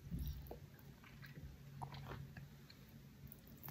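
A man chews food wetly close to a microphone.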